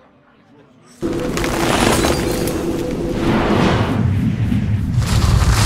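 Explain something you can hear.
A game's magic spell effect bursts in with a loud, rumbling whoosh.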